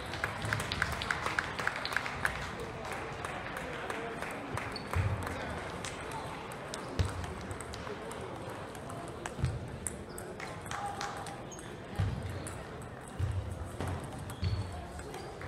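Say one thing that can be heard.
Table tennis balls click rapidly on tables and paddles.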